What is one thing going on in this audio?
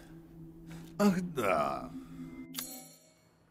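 A man speaks in a low, drawn-out voice.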